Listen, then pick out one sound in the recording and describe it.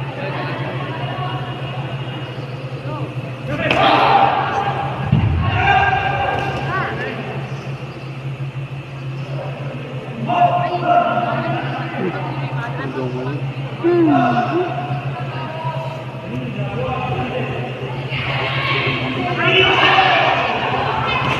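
A crowd of young spectators cheers and shouts in bursts in a large echoing hall.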